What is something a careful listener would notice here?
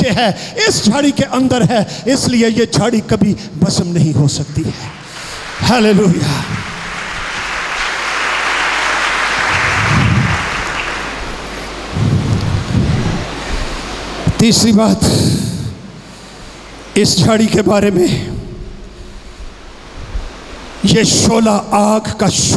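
An elderly man preaches with animation through a microphone, his voice echoing in a large hall.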